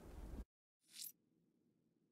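A soft electronic whoosh sounds.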